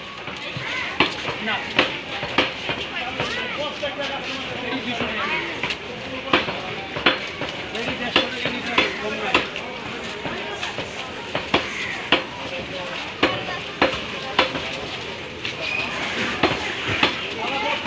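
A cleaver chops meat on a wooden block with sharp, regular thuds.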